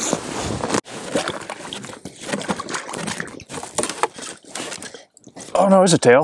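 Ice cracks and crunches as a wooden pole breaks through it.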